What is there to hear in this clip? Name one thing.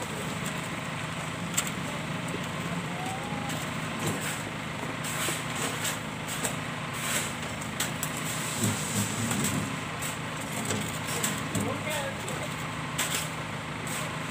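A wheelbarrow rolls over concrete.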